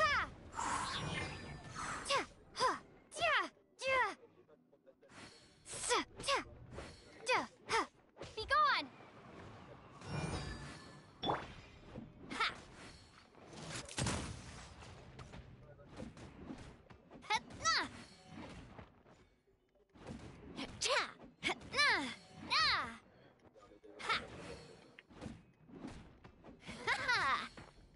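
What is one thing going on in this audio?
Sword slashes and magic blasts crash in quick bursts.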